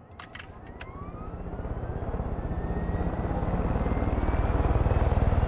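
Helicopter rotor blades thump faster and faster.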